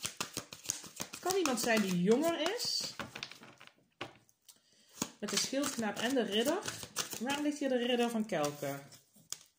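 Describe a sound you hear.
Cards riffle and flick as a hand shuffles a deck.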